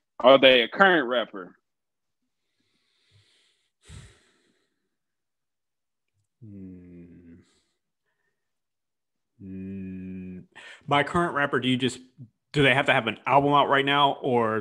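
A man speaks with animation into a close microphone over an online call.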